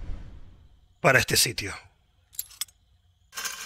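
A metal lever clanks as it is turned.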